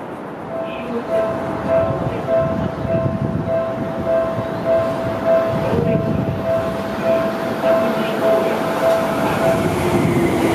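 A train rumbles closer, its wheels clacking over rail joints in a steady beat.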